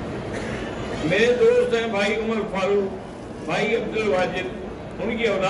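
An elderly man speaks slowly and solemnly into a microphone, in a large echoing hall.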